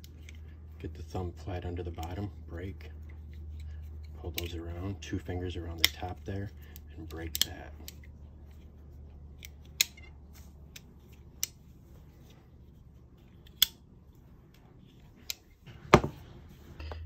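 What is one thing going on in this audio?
Metal tool parts click and snap into place.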